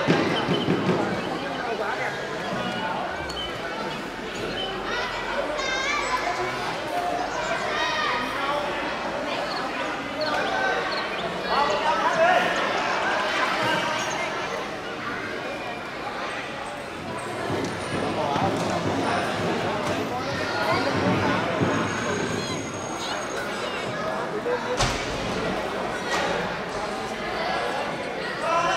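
Children shout to each other while playing.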